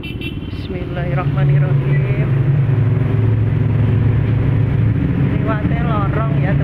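A motorcycle engine roars louder, echoing inside a tunnel.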